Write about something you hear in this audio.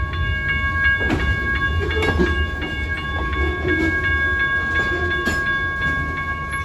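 Train wheels clank and squeal over the rail joints.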